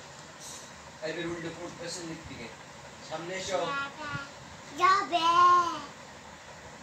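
A young child talks and calls out close by.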